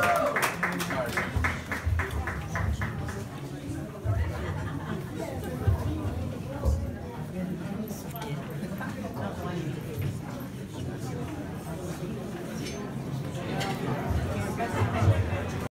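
A man speaks into a microphone to a crowd.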